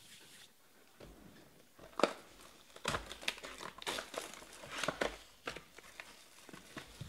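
Plastic wrapping crinkles and tears as hands open a box.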